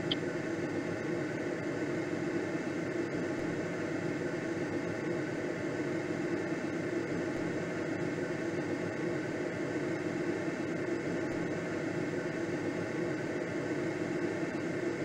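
Wind rushes steadily past a glider's cockpit.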